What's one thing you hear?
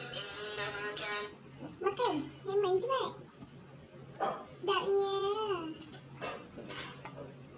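A baby sucks and smacks on a piece of fruit close by.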